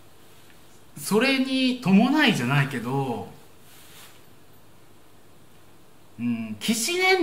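A young man speaks expressively close to a microphone.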